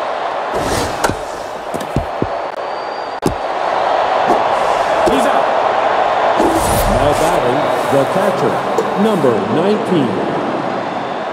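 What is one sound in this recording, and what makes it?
A crowd murmurs and cheers in a large stadium.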